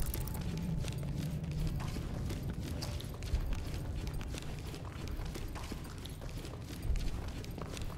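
Footsteps tread on a hard stone floor.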